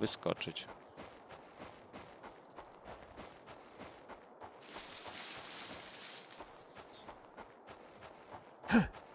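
Footsteps rustle steadily through dense ferns and undergrowth.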